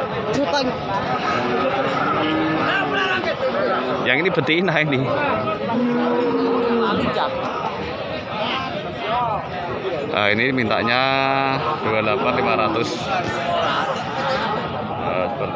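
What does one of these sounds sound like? A crowd of men chatter loudly all around outdoors.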